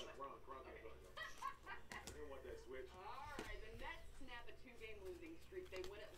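Plastic card sleeves rustle and crinkle as they are handled.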